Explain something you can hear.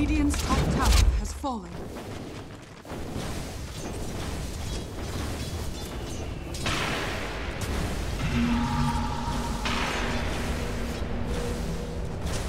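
Magic spells and weapon strikes clash in a busy fight.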